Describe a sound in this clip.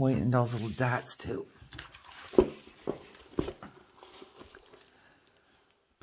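A plastic-covered canvas crinkles and rustles as it is handled.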